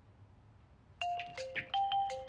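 A mobile phone rings with a chiming tone.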